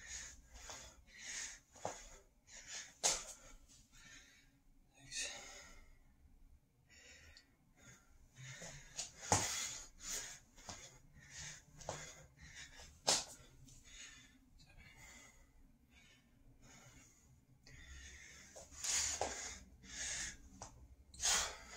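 A man breathes heavily.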